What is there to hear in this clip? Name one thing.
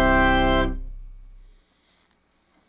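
A sustained keyboard chord rings out and fades away.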